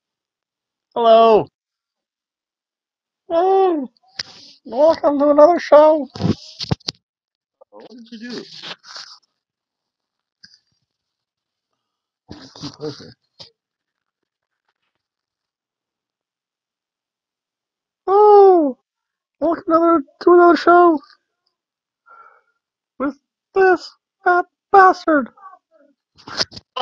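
A man speaks close to a microphone in short, animated bursts with long pauses.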